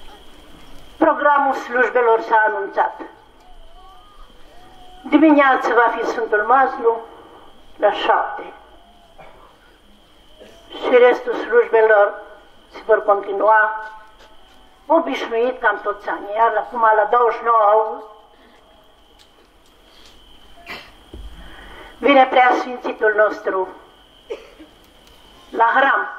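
An elderly man chants prayers through a microphone in short phrases, with pauses between them.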